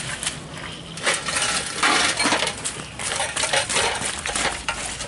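Metal nuts clink and rattle in a metal bowl.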